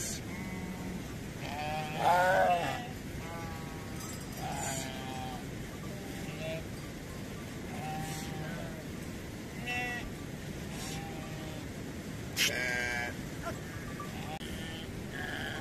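Many sheep and goats bleat all around, close by.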